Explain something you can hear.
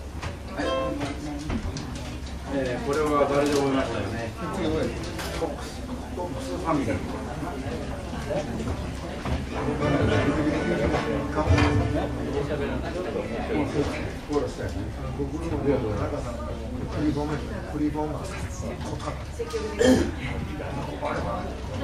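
A small acoustic band plays a lively tune on guitars and mandolin.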